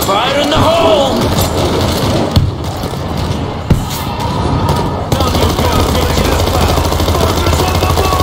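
A horde of creatures snarls and groans.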